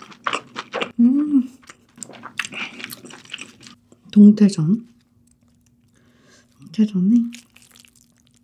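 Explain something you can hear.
A young woman hums with pleasure close to a microphone.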